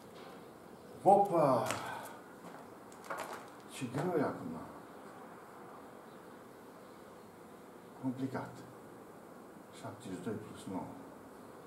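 An elderly man speaks calmly, as if explaining a lesson.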